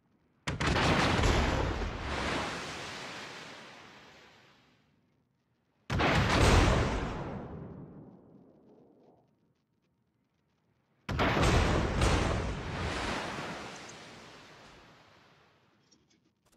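Shells splash into the sea nearby with heavy thuds.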